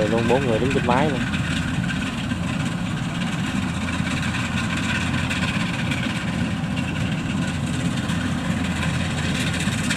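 A harvesting machine's engine rumbles steadily close by.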